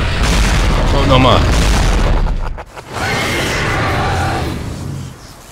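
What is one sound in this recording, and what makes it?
A huge monster roars deeply.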